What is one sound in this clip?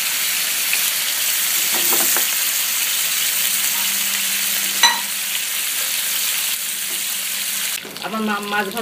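Food sizzles and crackles in hot oil in a pan.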